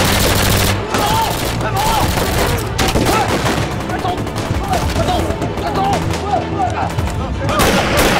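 A man shouts loudly, urging others to run.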